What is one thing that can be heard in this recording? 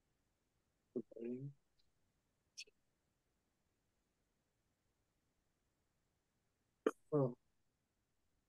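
A man speaks a few short words over an online call.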